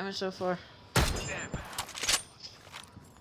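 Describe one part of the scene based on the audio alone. A weapon is swapped with a quick metallic clatter.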